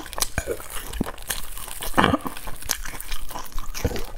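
Hands tear a crusty bread roll apart.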